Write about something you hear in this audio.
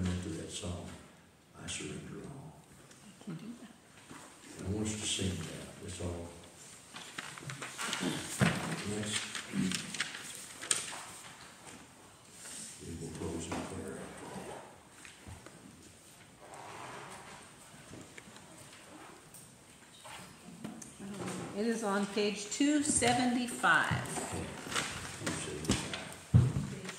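An elderly man speaks calmly in a room with some echo.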